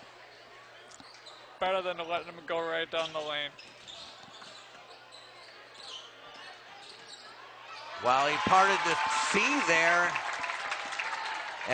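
A crowd cheers and murmurs in a large echoing gym.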